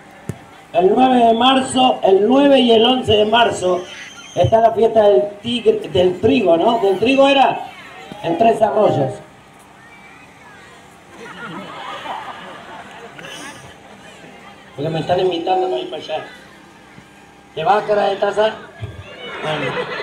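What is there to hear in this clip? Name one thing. A man talks loudly with animation through a loudspeaker.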